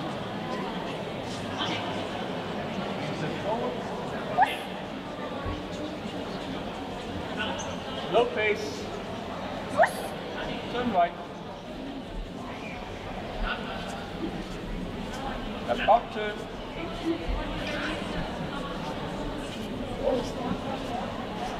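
Steady crowd murmur fills a large echoing hall.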